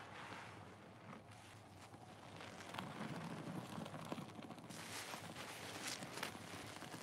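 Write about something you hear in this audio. Foam bubbles crackle and pop softly.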